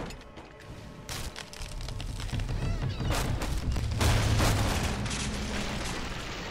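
Wooden beams creak, crack and crash as a structure collapses.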